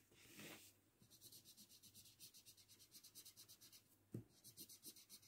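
A felt-tip marker scratches across paper in quick, rhythmic strokes.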